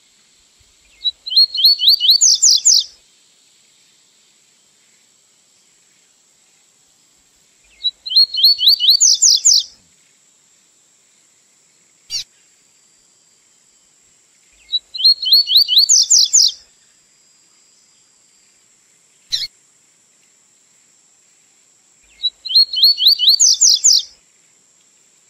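A small songbird sings short, rapid trilling phrases that repeat every few seconds.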